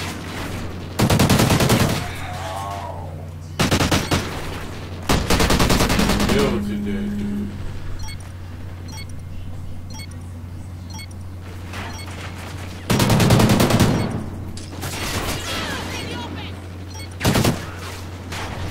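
Gunfire crackles in bursts from a video game.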